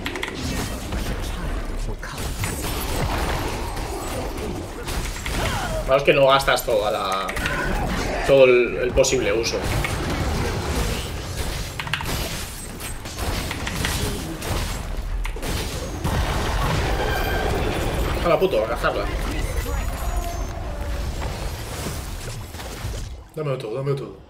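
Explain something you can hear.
Game battle sounds of spells and blows play continuously.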